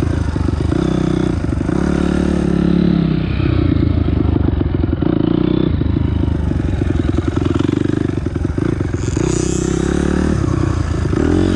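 A dirt bike engine revs loudly up and down close by.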